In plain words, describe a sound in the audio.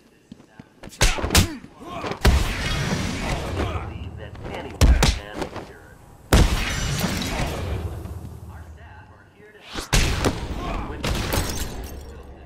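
Heavy punches land with sharp thuds.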